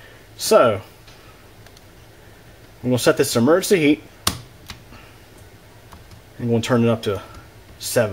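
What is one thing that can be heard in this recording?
A thermostat button clicks softly.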